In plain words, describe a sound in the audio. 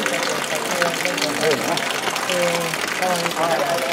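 Several men and women talk at a distance outdoors.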